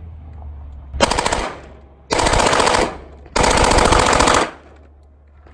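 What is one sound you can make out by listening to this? A gun fires loud, rapid bursts of shots outdoors.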